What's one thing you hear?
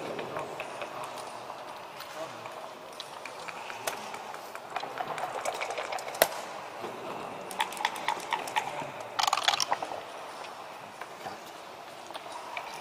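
Game pieces click and clack as a hand moves them on a wooden board.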